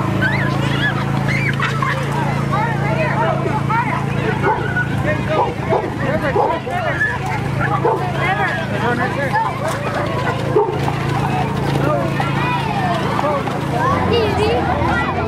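Horse hooves clop on pavement.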